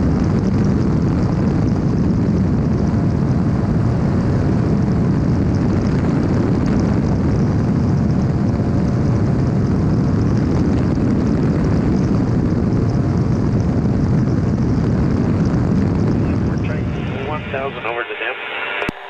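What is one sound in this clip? An aircraft engine drones loudly and steadily close by.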